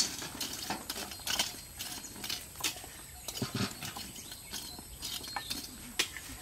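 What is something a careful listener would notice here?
Flour rattles softly through a sieve as it is shaken.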